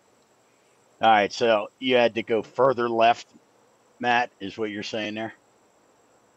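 A middle-aged man speaks casually into a close microphone.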